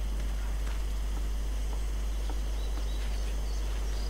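Footsteps thud on a wooden deck.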